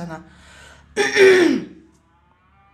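A woman coughs close by.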